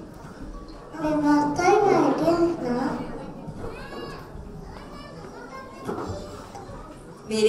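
A small child speaks softly into a microphone.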